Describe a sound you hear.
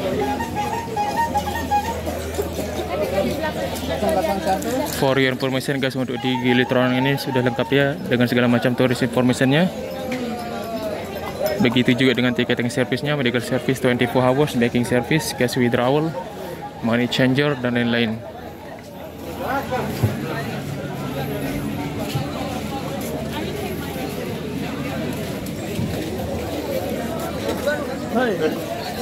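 A crowd of people chatters outdoors.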